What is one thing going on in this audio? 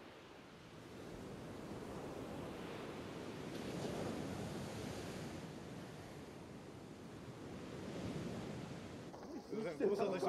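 Waves wash softly onto a beach.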